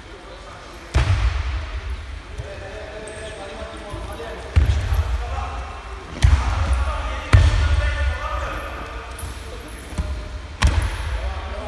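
Bodies thud onto a padded mat in a large echoing hall.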